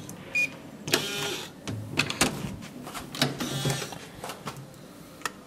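A door swings open.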